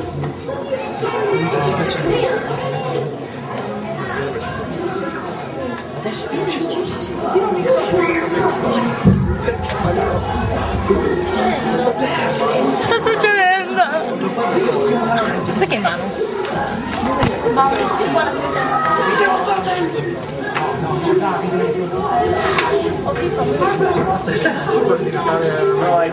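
A crowd of young people chatters and talks over one another close by.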